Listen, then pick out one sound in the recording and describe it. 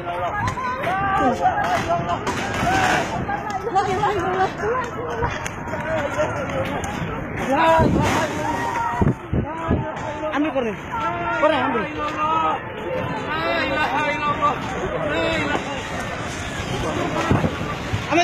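A crowd of people shout and call out excitedly nearby.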